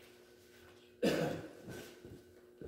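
A man coughs close by in an echoing room.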